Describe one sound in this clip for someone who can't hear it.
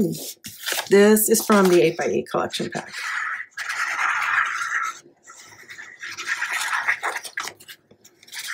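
Paper rustles and scrapes as it is handled.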